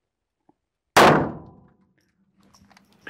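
A handgun fires a single loud shot that rings out.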